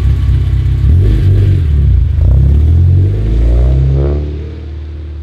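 A car engine revs up and settles back down.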